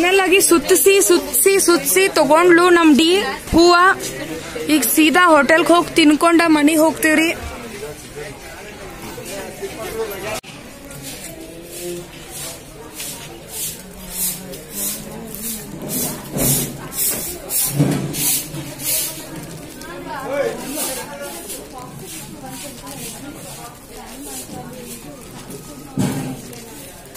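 People chatter quietly in a busy outdoor market.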